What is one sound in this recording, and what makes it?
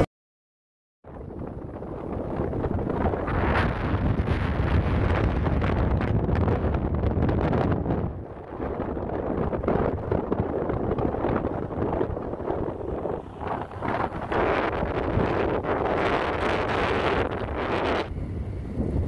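Wind roars loudly against a microphone, outdoors on the move.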